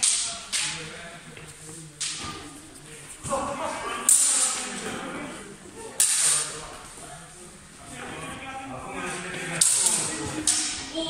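Steel longswords clash and ring in an echoing hall.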